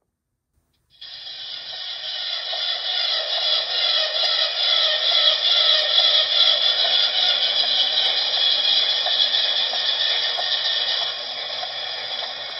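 A model locomotive's diesel engine sound starts up and rumbles steadily from a small, tinny speaker.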